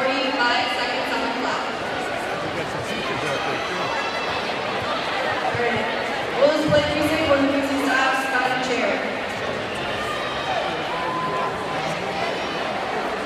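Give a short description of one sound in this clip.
A large crowd chatters and calls out in a big echoing gym.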